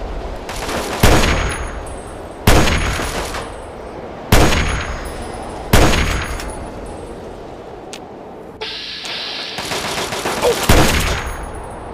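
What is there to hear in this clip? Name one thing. Rifle shots crack loudly and echo.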